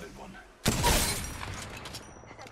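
A gunshot booms and echoes.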